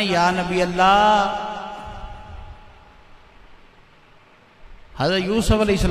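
A middle-aged man speaks slowly and earnestly into a microphone, with a long drawn-out sung tone, in an echoing hall.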